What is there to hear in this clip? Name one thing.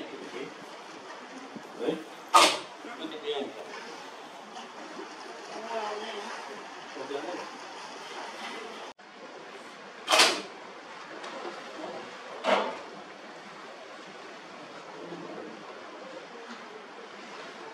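Choppy sea water sloshes steadily outdoors.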